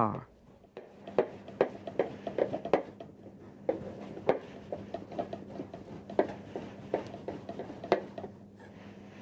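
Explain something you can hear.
A knife chops with quick taps on a wooden board.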